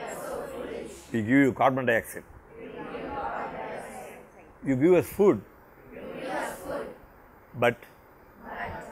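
A group of children sing along in chorus.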